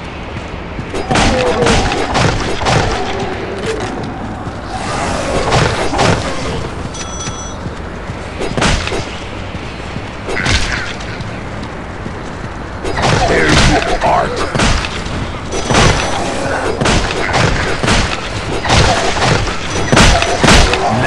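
Rapid gunfire bursts out in loud volleys.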